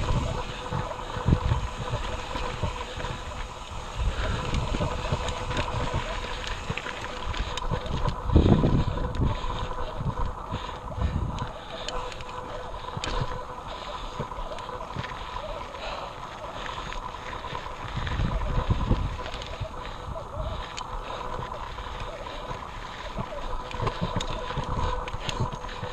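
Bicycle tyres roll and bump over a rocky dirt trail.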